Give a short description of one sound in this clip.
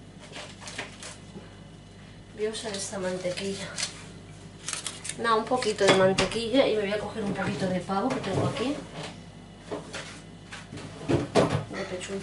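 Items clatter as a woman takes them from a refrigerator.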